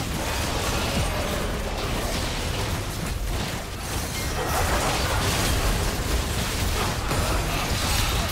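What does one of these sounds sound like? Game spell effects crackle and burst during a fight.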